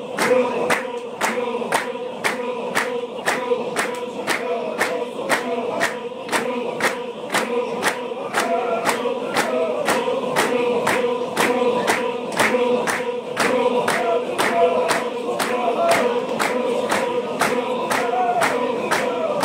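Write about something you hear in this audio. Many feet stamp on the ground in a fast, steady rhythm.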